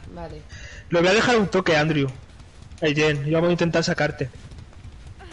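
A young woman speaks loudly and with animation into a close microphone.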